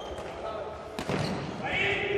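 A ball is kicked hard in an echoing hall.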